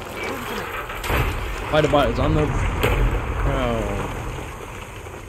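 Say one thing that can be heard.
Debris crashes down with a loud, deep rumble.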